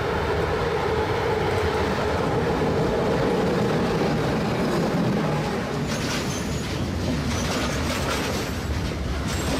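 A train rumbles loudly out of a tunnel and passes close by.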